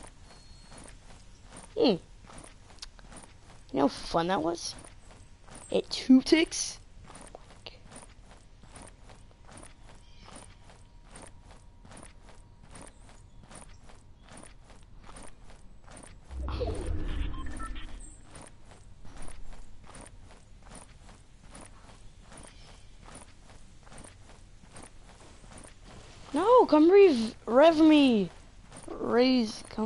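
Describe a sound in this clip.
Footsteps patter quickly and steadily on grass.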